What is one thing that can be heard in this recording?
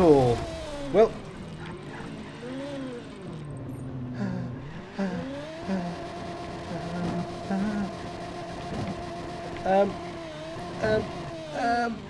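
A racing car engine revs and whines.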